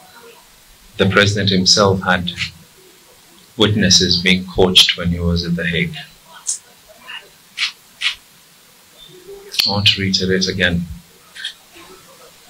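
A man speaks firmly into a microphone, in bursts with pauses.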